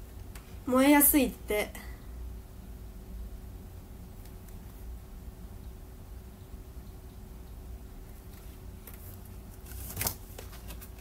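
A young woman speaks softly and close up, with a brief rising exclamation.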